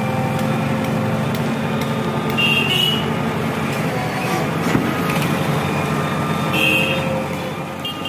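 Rubbish thuds into a metal truck bed.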